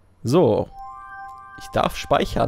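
A short electronic jingle plays.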